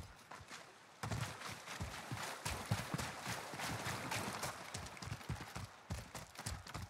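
Water splashes as someone wades through a shallow stream.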